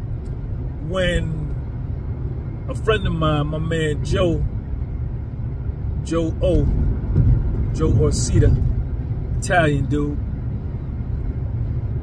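A car's engine and road noise rumble steadily inside the car.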